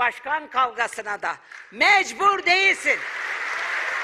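A middle-aged woman speaks forcefully into a microphone in a large hall.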